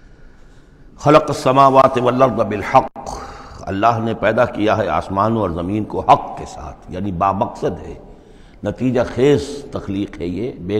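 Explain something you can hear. An elderly man speaks calmly close to a microphone.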